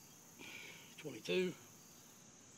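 A man grunts loudly with effort close by.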